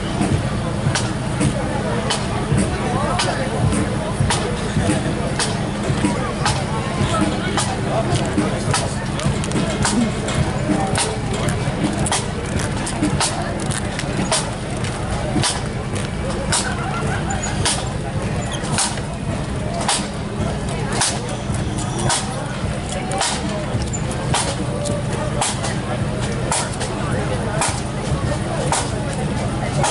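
Bagpipes play a loud marching tune nearby.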